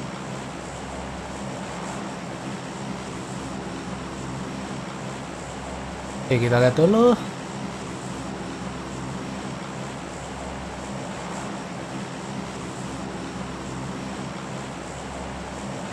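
A plane's propeller engines drone steadily.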